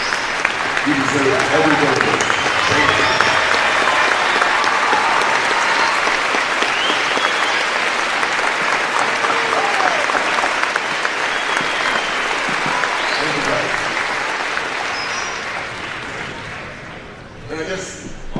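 A large crowd claps and cheers loudly in a big echoing hall.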